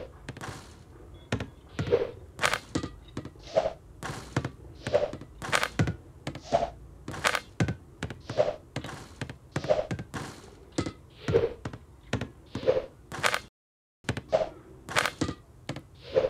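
A basketball swishes through a hoop.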